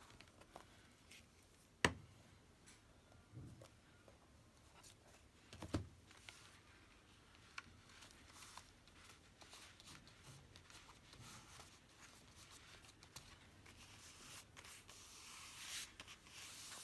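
Paper rustles and crinkles as hands handle pages.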